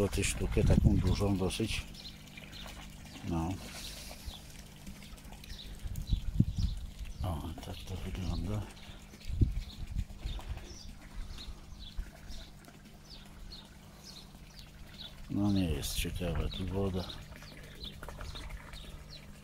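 Light rain patters softly on the surface of a pond.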